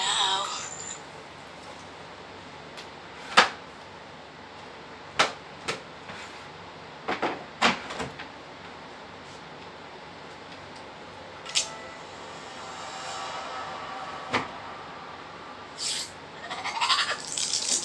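A cloth rubs and wipes against glass.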